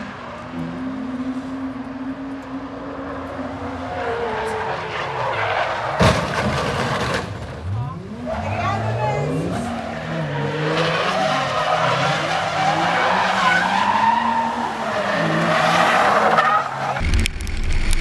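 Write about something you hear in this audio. Car engines rev up and down hard as cars slide around a track.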